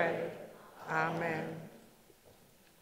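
A congregation reads aloud together in unison in a large room.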